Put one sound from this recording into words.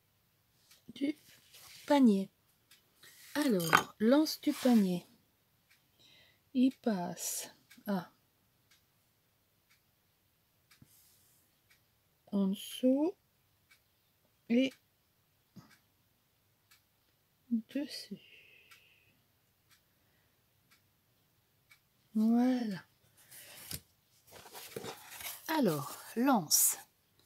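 A woman talks calmly and close by, pausing often.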